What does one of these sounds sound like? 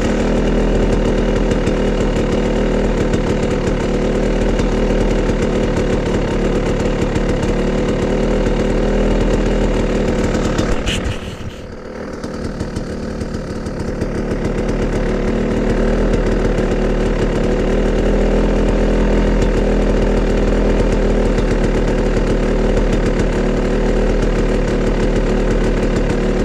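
A motorbike engine idles steadily close by.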